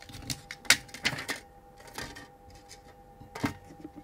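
A plastic cover clicks against a plate.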